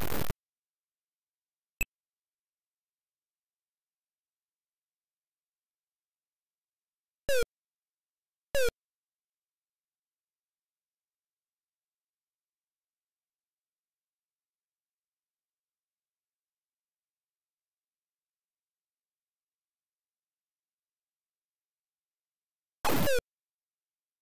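Short falling electronic bleeps sound from an 8-bit home computer game.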